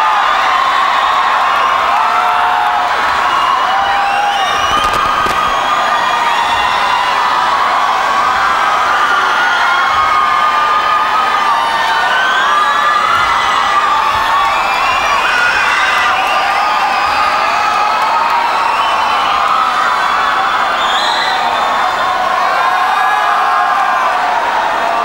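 A huge crowd cheers and sings loudly in a large echoing arena.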